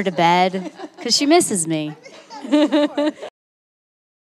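A young woman speaks cheerfully and with animation into a microphone, close by.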